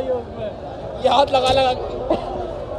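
A young man speaks excitedly close up.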